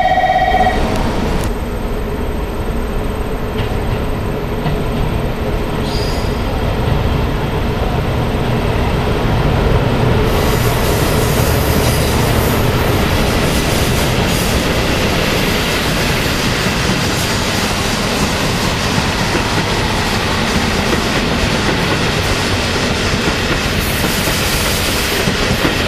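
A diesel train engine rumbles as a train pulls in.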